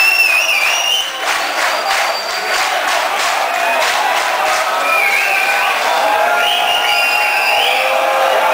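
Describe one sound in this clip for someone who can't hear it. A rock band plays loudly through large speakers in an echoing hall.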